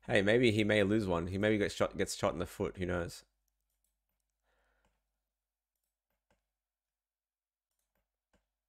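Keyboard keys click softly.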